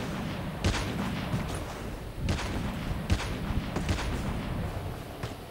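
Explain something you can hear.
Footsteps run over grass and dirt.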